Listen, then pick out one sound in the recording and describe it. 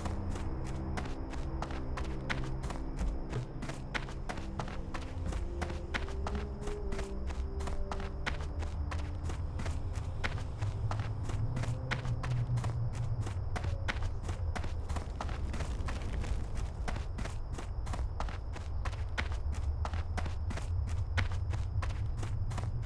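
Footsteps tread steadily on packed dirt.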